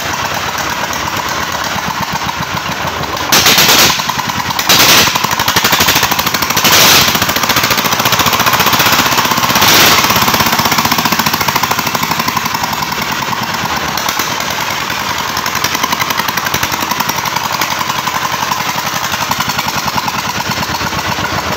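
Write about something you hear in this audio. A small diesel engine runs close by with a rapid, steady chugging.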